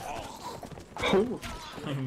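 Horses gallop past over snowy ground.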